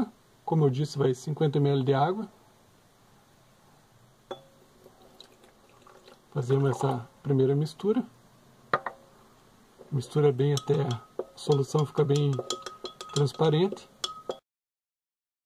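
A plastic spoon stirs and clinks against glass.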